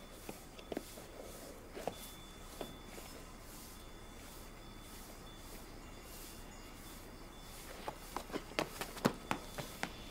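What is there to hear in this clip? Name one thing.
A broom sweeps across a stone floor.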